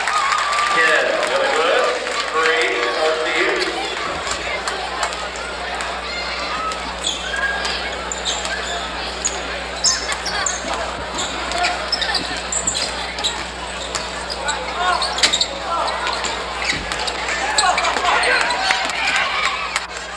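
A crowd chatters and cheers loudly in a large echoing gym.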